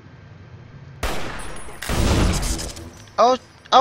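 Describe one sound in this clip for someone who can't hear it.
A rifle fires loudly, with a ringing echo.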